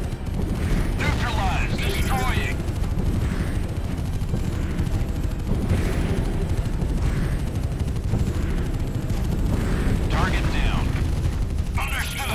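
Buildings explode with deep booms.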